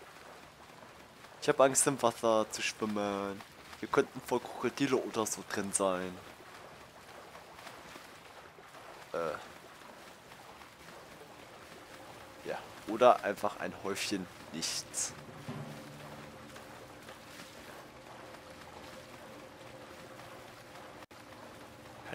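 Water splashes as a swimmer strokes through it.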